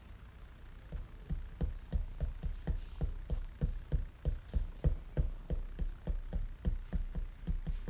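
Pastel chalk scratches on paper in quick, rhythmic strokes.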